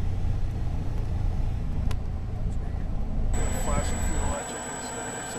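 A small plane's propeller engine drones loudly and steadily.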